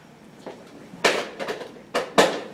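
A person drops heavily onto the floor with a thud.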